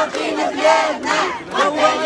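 A woman shouts to the crowd.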